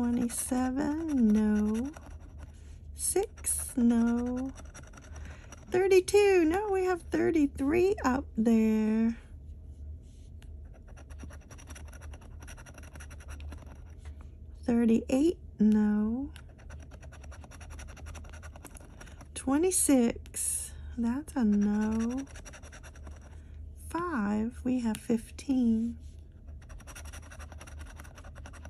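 A metal tool scrapes across a scratch card.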